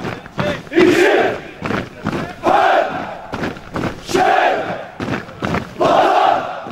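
Boots stamp on pavement in a steady marching rhythm.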